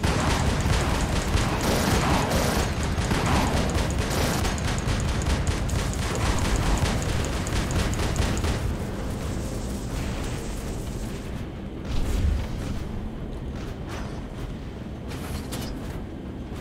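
Heavy metal footsteps stomp and clank.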